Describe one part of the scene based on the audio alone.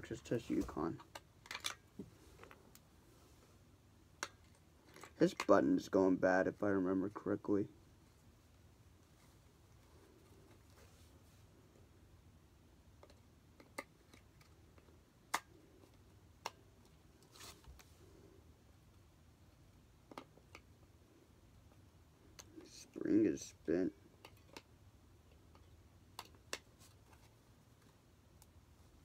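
Small plastic parts click and rattle in a man's hands.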